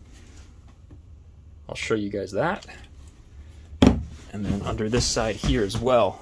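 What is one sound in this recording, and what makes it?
A wooden seat lid knocks as it is lifted and set down.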